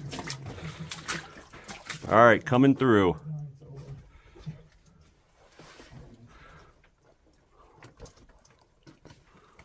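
Boots crunch and squelch over rubble and mud.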